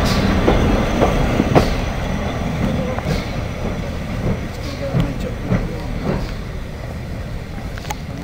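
A steam locomotive chuffs steadily as it pulls away and fades into the distance.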